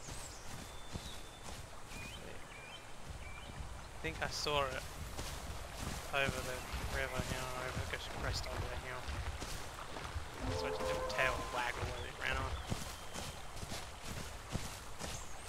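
Quick footsteps patter and thud on grass and gravel.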